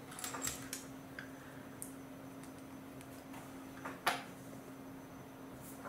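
Small plastic toy bricks click and clatter as hands handle them.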